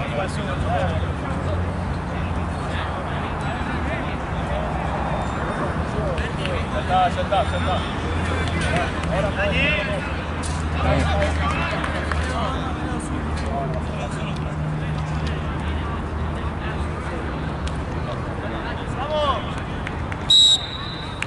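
Young men shout and call to one another outdoors.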